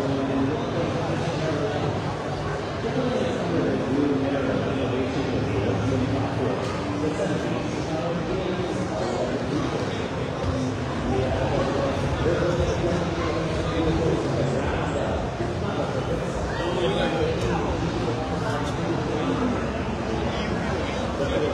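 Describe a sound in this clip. A crowd of people chatters throughout a large, echoing hall.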